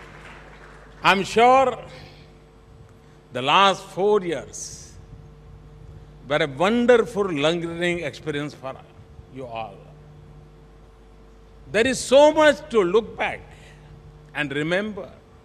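An elderly man speaks with animation into a microphone in a large hall.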